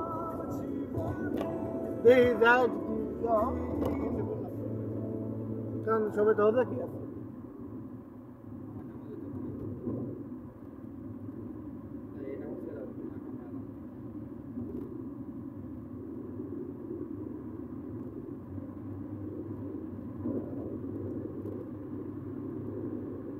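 A car drives steadily with a low engine hum and road rumble.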